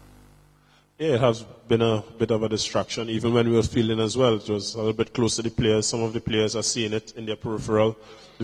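A man speaks calmly into a microphone, close and clear.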